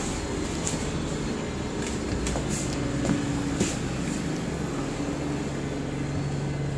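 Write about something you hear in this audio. Bus fittings rattle and clatter with the motion.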